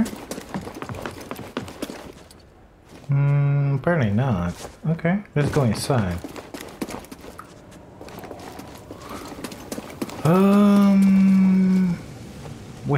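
Footsteps thud on wooden planks and stone.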